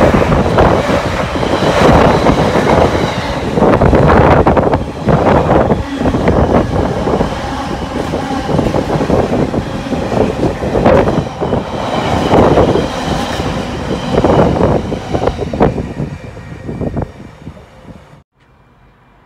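A long freight train rumbles and clatters past close by, then fades away.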